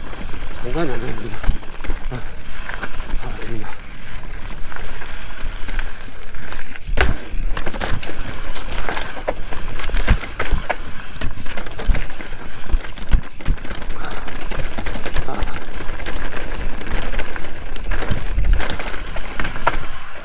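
A bicycle rattles and clunks over bumps.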